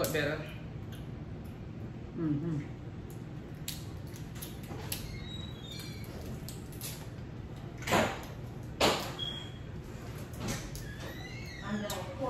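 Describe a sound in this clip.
Crab shells crack and snap between fingers, close by.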